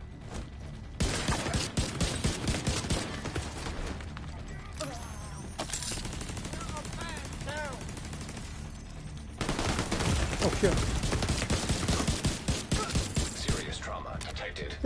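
Gunfire rattles in long bursts.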